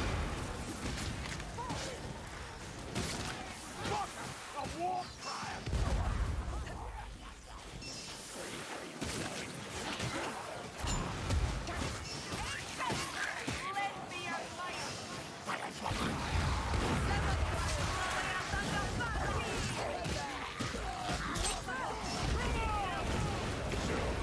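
Flames roar and crackle from fiery blasts.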